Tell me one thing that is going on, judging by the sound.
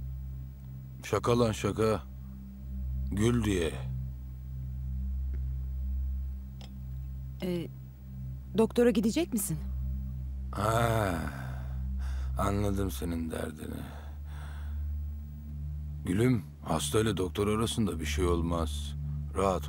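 A man speaks calmly and teasingly, close by.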